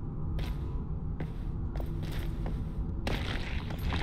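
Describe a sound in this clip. Footsteps crunch over soft ground.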